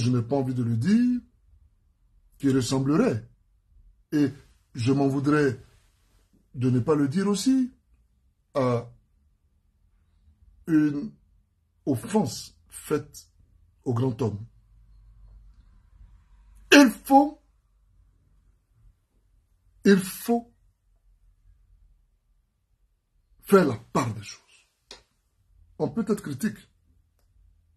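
A man speaks calmly and deliberately, close to the microphone, with long pauses.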